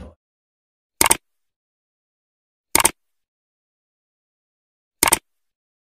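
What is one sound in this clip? A computer mouse clicks sharply, three times.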